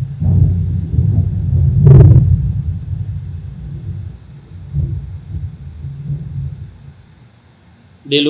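A cooling fan whirs steadily.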